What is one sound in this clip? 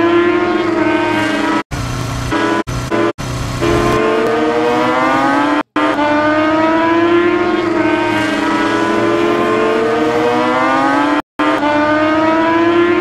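A motorbike engine whines steadily, its pitch rising and falling.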